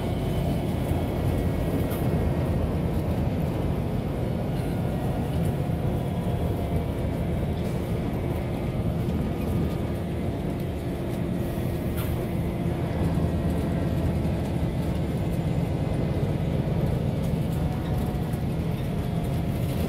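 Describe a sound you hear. Many passengers chatter in a crowded bus.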